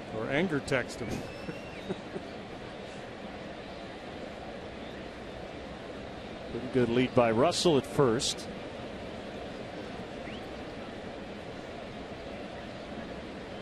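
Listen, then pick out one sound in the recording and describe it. A stadium crowd murmurs steadily in the open air.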